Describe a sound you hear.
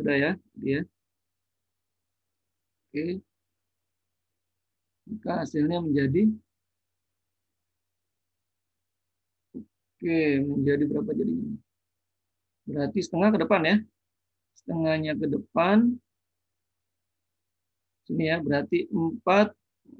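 A man explains calmly into a close microphone, in short bursts with pauses.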